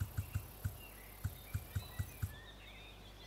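Soft interface clicks tick quickly one after another.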